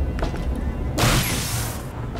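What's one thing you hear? A gun fires a crackling energy beam.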